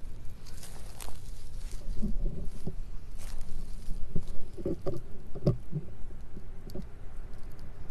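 A cat pads through dry grass, rustling it.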